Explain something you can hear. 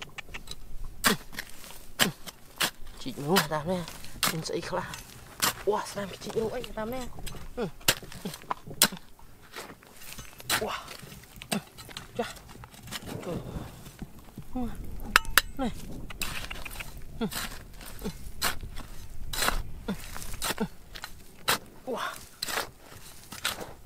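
A small trowel scrapes and digs into dry, stony soil.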